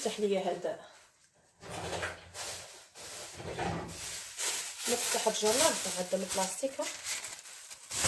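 A woman talks nearby in a casual way.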